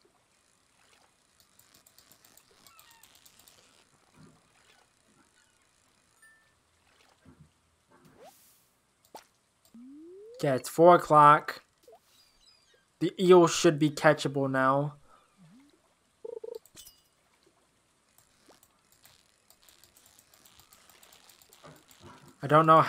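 A fishing reel clicks rapidly.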